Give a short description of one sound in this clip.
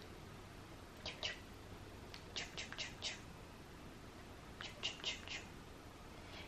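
A small dog's paw pats against a person's hand several times.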